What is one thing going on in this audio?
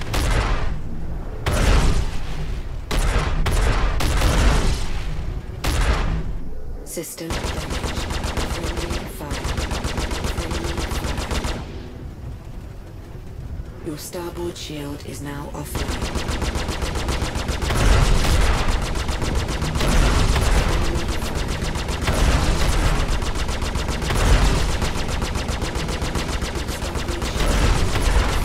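A spacecraft engine rumbles loudly and steadily.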